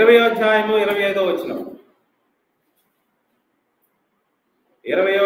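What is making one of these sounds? A middle-aged man speaks steadily into a close microphone, with pauses.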